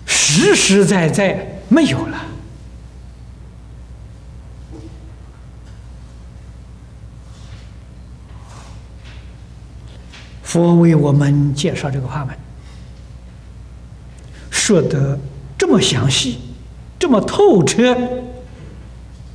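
An elderly man speaks calmly and slowly through a microphone, with long pauses.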